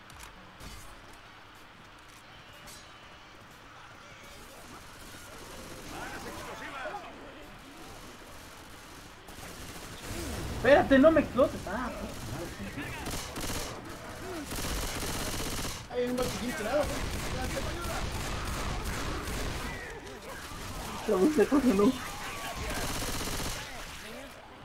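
A submachine gun fires in short bursts.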